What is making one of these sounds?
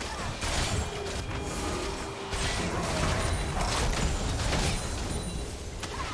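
Game sword and magic hits clash repeatedly.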